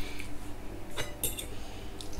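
A plate clinks as food is picked up.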